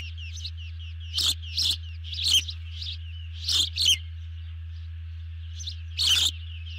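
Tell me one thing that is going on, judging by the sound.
An osprey calls nearby with sharp, high whistling chirps.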